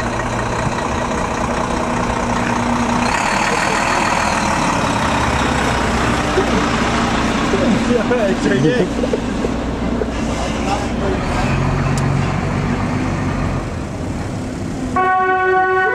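A heavy truck engine rumbles loudly close by.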